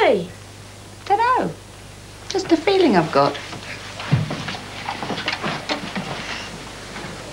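A woman speaks warmly to a child nearby.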